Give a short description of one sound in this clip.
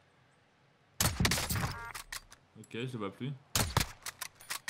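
A sniper rifle fires loud shots.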